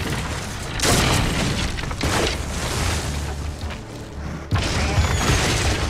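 A large creature's heavy footsteps thud nearby.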